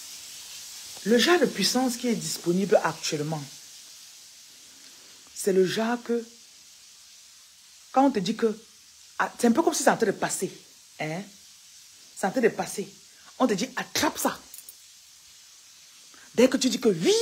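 A woman talks with animation close to the microphone, in bursts with pauses.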